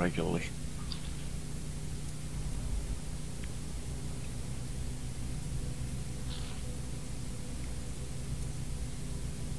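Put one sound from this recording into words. Soft menu blips sound as items are selected.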